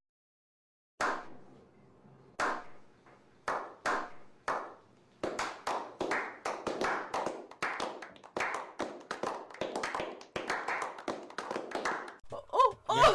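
A small group of men clap their hands, slowly at first and then faster.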